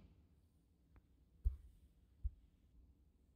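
Snooker balls knock against each other and the cushion.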